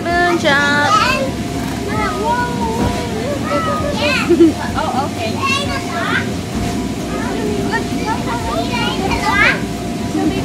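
Children thump as they bounce on an inflatable floor.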